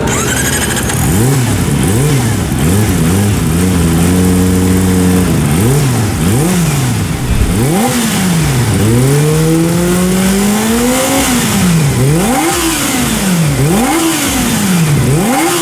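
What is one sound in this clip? A motorcycle engine revs up and down repeatedly, loud and close.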